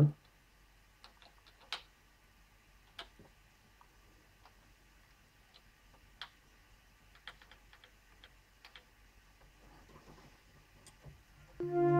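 Buttons click softly now and then.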